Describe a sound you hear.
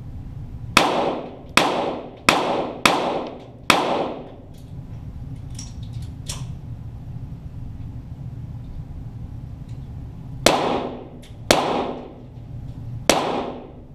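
Shots crack one after another, each ringing out in an echoing space.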